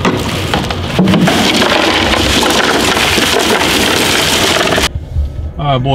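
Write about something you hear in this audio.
Ice cubes rattle and clatter into a cooler.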